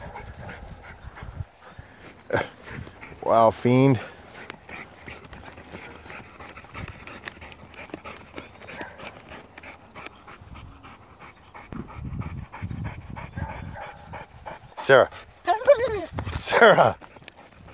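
A dog digs, its paws scratching and scraping at soil and grass.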